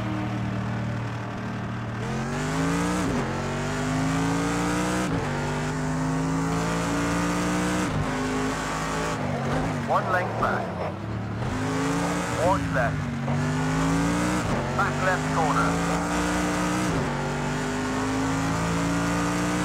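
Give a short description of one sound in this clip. A racing car engine roars steadily and shifts through its gears.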